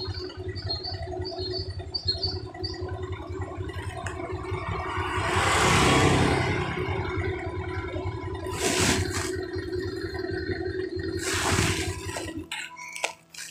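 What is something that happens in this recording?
A motorcycle engine idles close by with a low, steady rumble.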